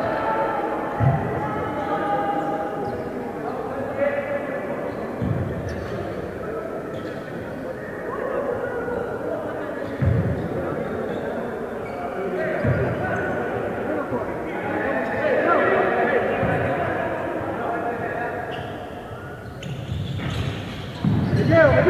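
A basketball bounces with dull thumps on a hard floor.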